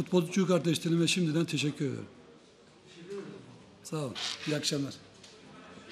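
A middle-aged man speaks calmly into a microphone.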